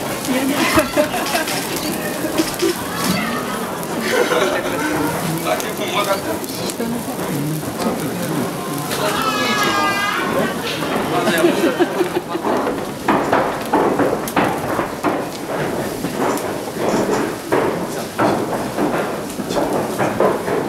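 A burning torch crackles and hisses with fire.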